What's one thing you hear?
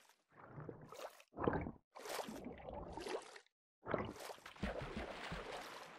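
Water splashes as a game character swims.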